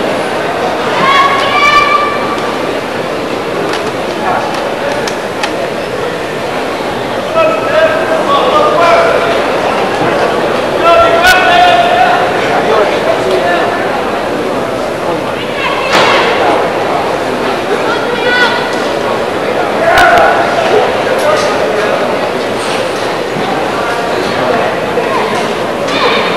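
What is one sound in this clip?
Fighters shout sharply as they strike.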